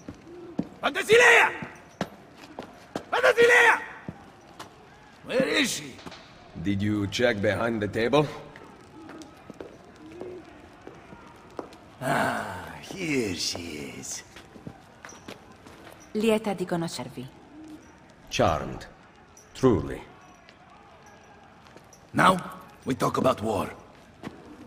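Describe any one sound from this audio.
A man shouts loudly with excitement.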